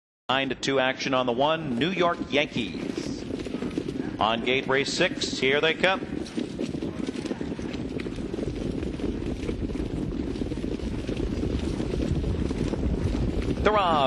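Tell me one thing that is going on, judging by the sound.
Horses' hooves pound on a dirt track.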